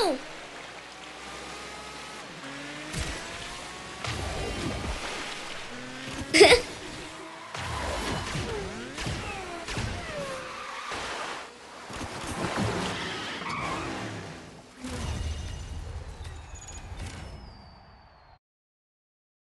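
A racing kart engine whines and revs at high speed.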